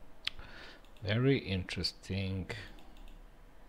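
A middle-aged man speaks a few words briefly through a headset microphone.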